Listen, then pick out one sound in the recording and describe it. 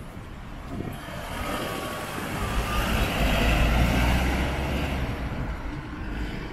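A truck drives past loudly with a rumbling engine.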